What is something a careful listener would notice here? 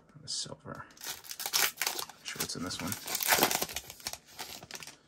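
A foil wrapper crinkles loudly.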